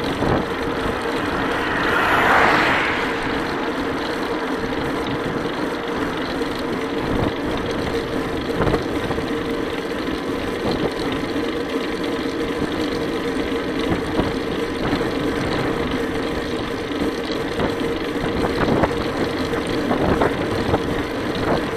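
Bicycle tyres hum on asphalt.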